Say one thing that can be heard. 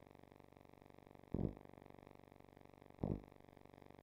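A bass drum beats steadily.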